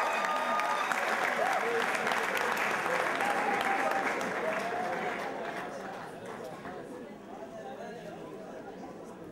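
A crowd chatters and cheers loudly, then quietens.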